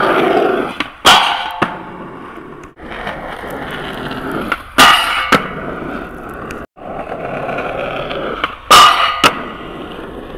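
A skateboard clacks sharply as it lands and snaps.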